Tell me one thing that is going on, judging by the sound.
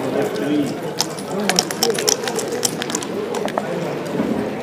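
Dice rattle and tumble across a wooden board.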